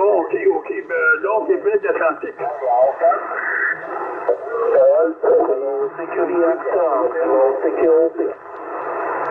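Voices chatter through a small radio speaker.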